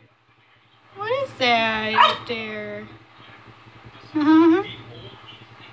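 A French bulldog whines.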